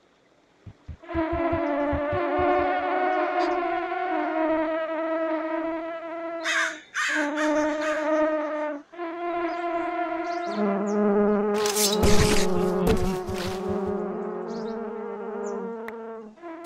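A giant wasp buzzes loudly close by.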